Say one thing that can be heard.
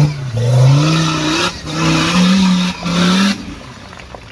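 An off-road four-by-four engine revs hard under load up a steep climb.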